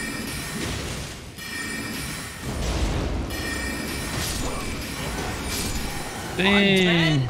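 Swords clash and magic blasts burst during a fight.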